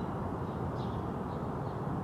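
A cat meows softly nearby.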